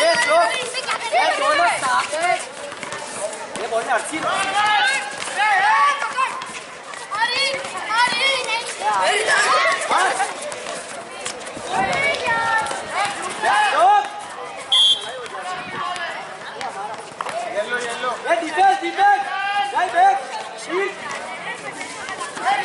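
Young people shout and call out to each other outdoors.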